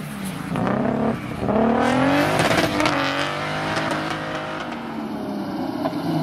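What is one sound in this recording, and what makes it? A rally car engine roars and revs hard as the car speeds past.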